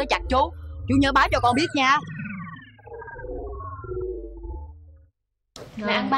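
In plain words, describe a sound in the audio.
A boy speaks with animation close by.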